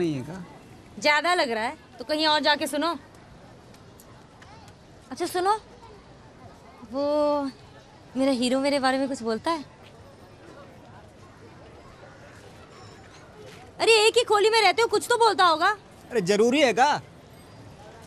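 A woman talks calmly and then with animation, close by.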